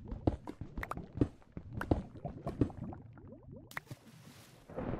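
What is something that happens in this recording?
A pickaxe chips at stone with quick, repeated knocks.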